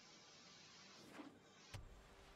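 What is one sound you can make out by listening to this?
A soft whoosh sounds as a game card is played.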